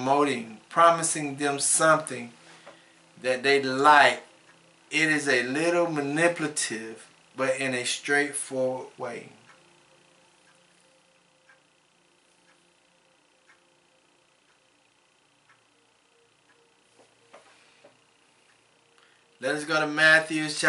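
A man speaks calmly into a close microphone, pausing between phrases.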